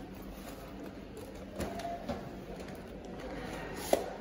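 Plastic rustles.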